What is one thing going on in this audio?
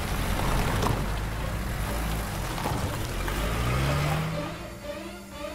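A second car's engine rumbles as it approaches and passes close by.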